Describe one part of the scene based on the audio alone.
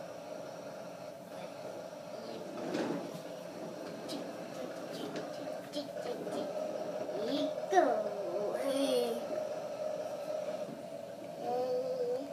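Plastic toy wheels roll and rumble across a hard tile floor.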